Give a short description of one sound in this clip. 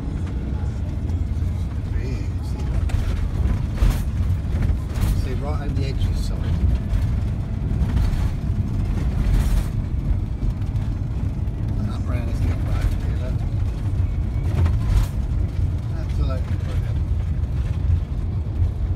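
A car engine rumbles steadily inside a moving car.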